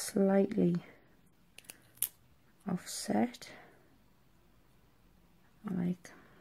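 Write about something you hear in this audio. Paper crinkles softly between fingers as it is folded.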